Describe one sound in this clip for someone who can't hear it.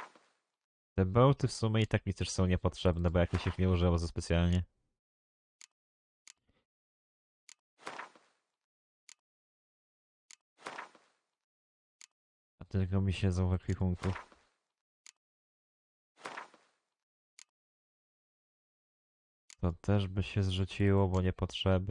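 A man speaks with animation into a microphone, close by, in short bursts.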